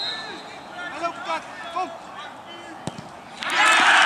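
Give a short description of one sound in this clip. A player kicks a football with a thud.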